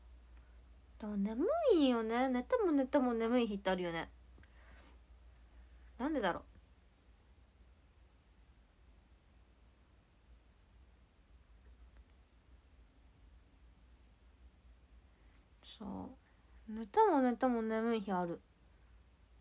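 A young woman speaks softly and close by in short bursts.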